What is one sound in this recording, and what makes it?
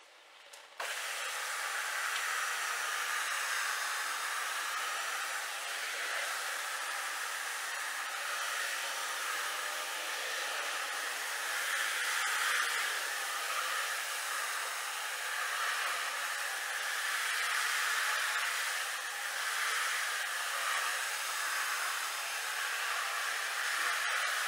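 A carpet cleaning machine whirs steadily in an echoing room.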